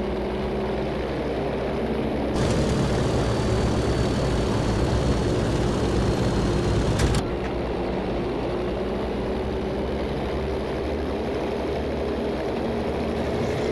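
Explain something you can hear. Aircraft propeller engines drone steadily.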